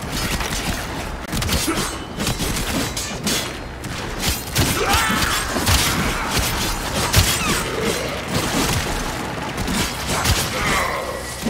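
A blade whooshes through the air and strikes in combat.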